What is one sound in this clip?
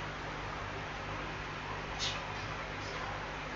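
A screwdriver scrapes and clicks against a metal screw.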